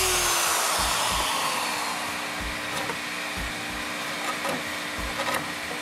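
A chisel scrapes and shaves wood.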